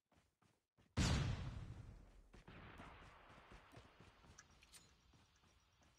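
A loud gunshot booms close by and rumbles away.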